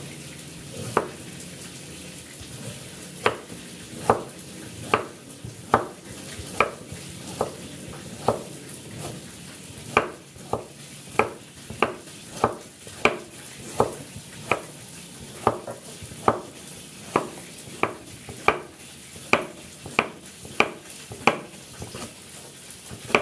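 A cleaver chops steadily through soft vegetable onto a wooden block.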